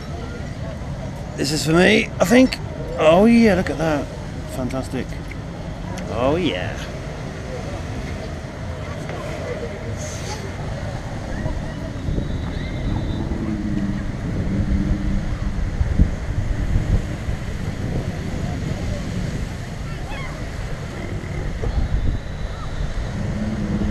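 Small waves wash gently onto a shore outdoors.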